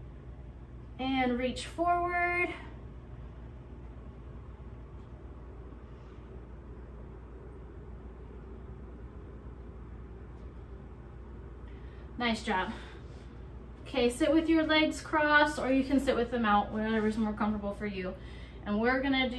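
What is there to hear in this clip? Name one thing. A young woman speaks calmly and clearly to the listener, close by.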